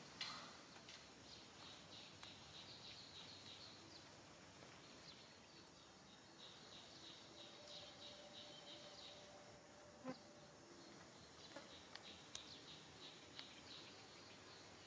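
A baby macaque squeaks and chirps in short, high bursts.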